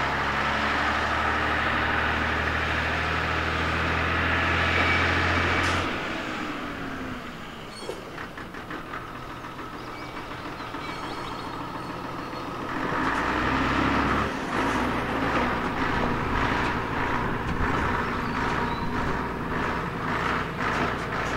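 A diesel railcar engine rumbles as the train climbs past.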